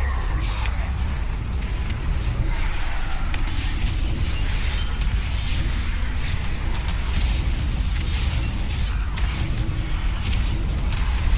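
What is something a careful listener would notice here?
Spell and combat sound effects crackle and boom in quick succession.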